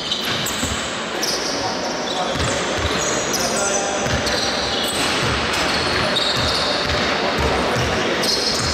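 Players' footsteps patter across an echoing hall.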